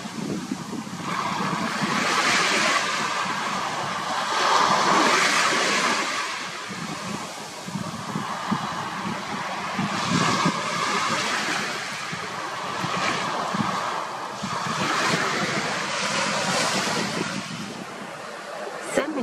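Small waves wash up onto a sandy shore and break softly.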